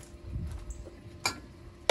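A wooden spoon scrapes against a metal pot.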